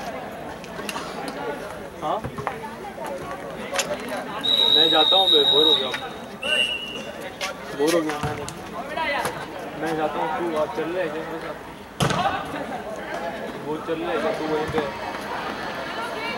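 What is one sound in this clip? A crowd of young people chatters and calls out outdoors.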